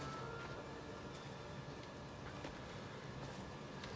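Footsteps crunch softly on a forest floor.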